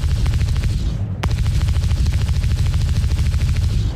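A laser gun fires a single shot.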